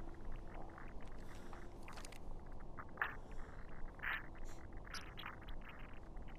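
A man speaks in a low, menacing voice nearby.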